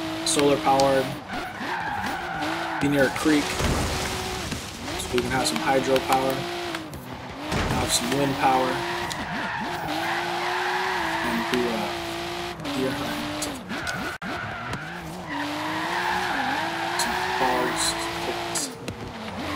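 A car engine revs and whines, rising and falling as gears shift.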